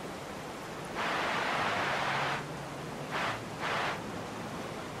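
A torch flame hisses against a dirt bike.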